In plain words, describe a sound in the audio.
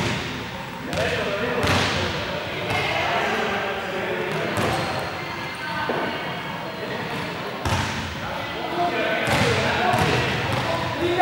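A young man speaks in a large echoing hall.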